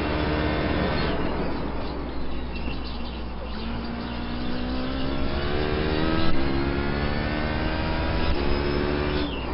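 A racing car engine roars, rising and falling in pitch as it shifts gears.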